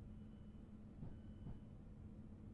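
Train wheels clunk over rail joints.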